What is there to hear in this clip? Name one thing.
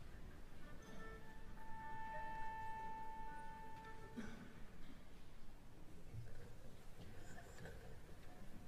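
An orchestra begins to play softly.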